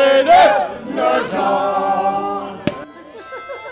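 A group of elderly people sing together.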